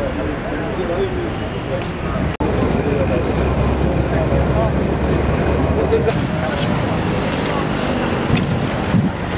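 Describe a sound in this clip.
A crowd of young men chatters and murmurs outdoors.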